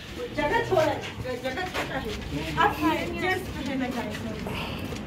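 A young woman and a man talk and call out with animation close by.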